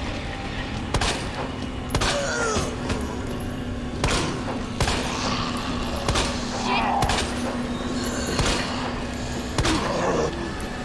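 A handgun fires repeated sharp shots.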